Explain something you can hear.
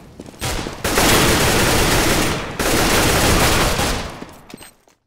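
A rifle fires in rapid bursts up close.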